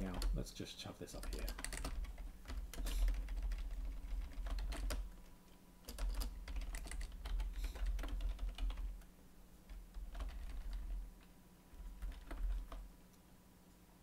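Keys clatter on a computer keyboard.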